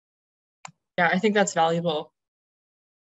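Another young woman speaks calmly over an online call.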